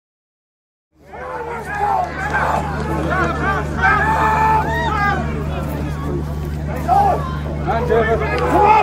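Several men shout to each other across an open field.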